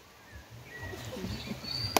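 A woman claps her hands softly.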